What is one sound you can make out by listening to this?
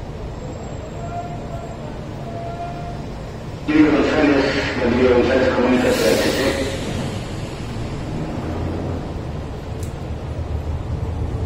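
A train's engine hums steadily at a platform.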